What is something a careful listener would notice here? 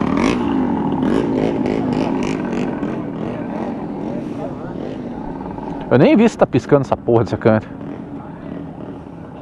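A motorcycle engine hums close by as the motorcycle rides along.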